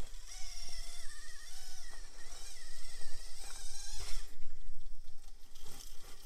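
Rubber tyres grind and scrape over rock.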